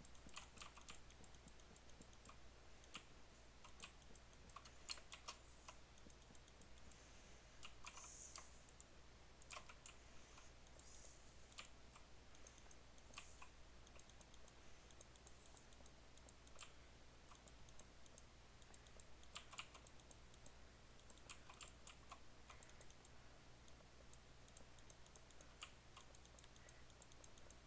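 Short, sharp clicks come at uneven intervals as blocks are placed.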